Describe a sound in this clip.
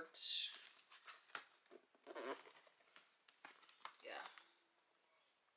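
A cardboard box rustles and taps in hands.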